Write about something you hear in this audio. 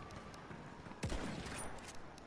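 A scoped rifle fires a shot.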